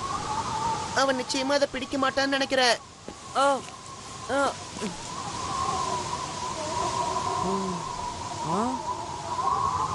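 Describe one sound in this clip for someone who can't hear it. A boy cries out in alarm.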